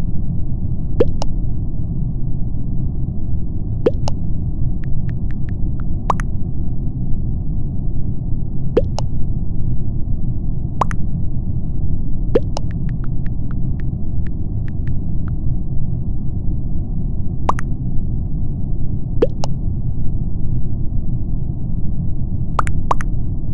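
Short electronic blips sound as chat messages pop up.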